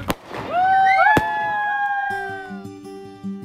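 A firework whistles as it falls.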